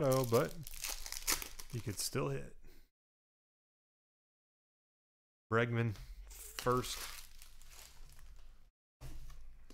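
Plastic wrappers crinkle and rustle.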